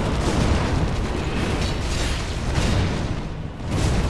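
Swords clash with ringing metallic strikes.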